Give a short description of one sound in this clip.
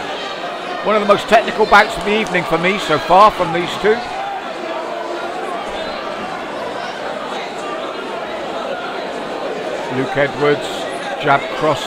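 Spectators shout and cheer loudly in a large hall.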